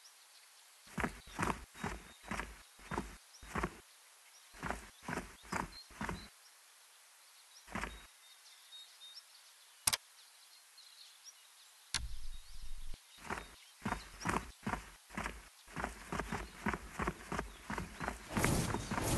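Footsteps patter steadily on hard ground.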